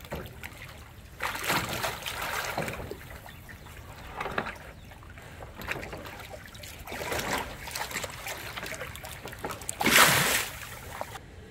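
A tiger splashes and sloshes water in a tub.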